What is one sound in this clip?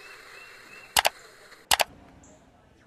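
A computer switches off with a sharp click.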